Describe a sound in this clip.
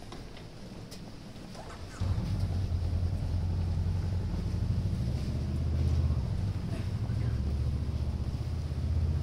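Slow footsteps shuffle on a paved street outdoors.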